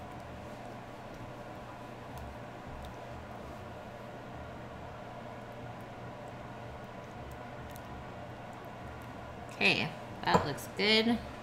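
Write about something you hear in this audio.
A spoon scrapes softly as sauce is spread over dough.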